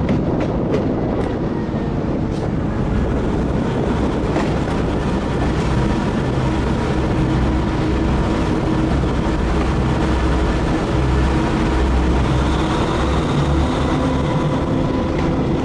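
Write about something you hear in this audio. A locomotive rumbles along the rails, heard from inside its cab.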